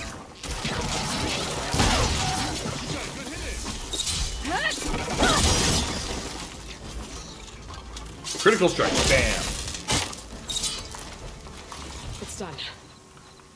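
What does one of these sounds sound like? Heavy crashes and blasts ring out.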